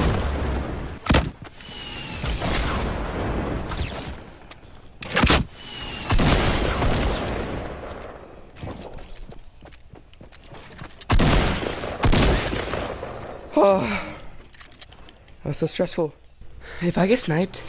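Wooden walls clatter as they are built and broken.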